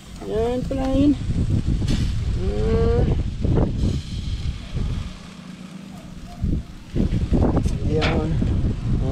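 Meat sizzles softly on a hot grill.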